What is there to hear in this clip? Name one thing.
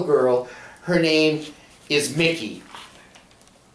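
A young girl speaks up close, reading out in a lively voice.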